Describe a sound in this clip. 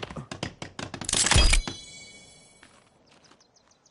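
A tree creaks and crashes to the ground.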